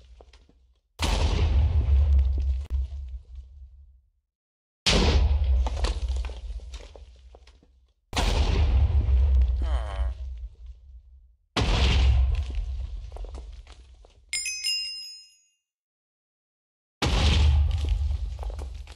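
Explosions boom repeatedly with a deep rumble that fades away.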